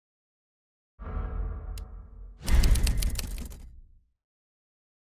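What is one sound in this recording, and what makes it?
A heavy thud and a whooshing rumble sound.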